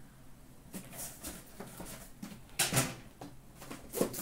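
A cardboard box scrapes and thumps as it is handled.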